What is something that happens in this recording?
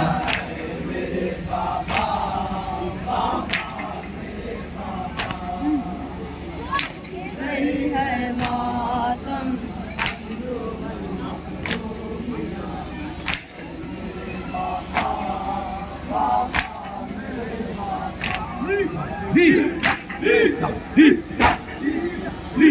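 A crowd of men chants loudly together outdoors.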